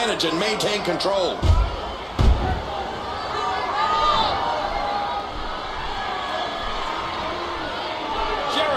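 A crowd cheers and roars steadily throughout.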